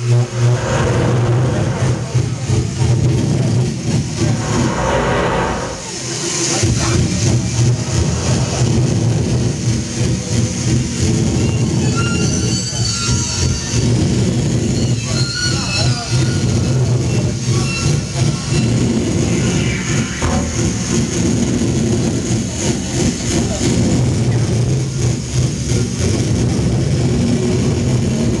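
A drummer plays a drum kit loudly, with crashing cymbals.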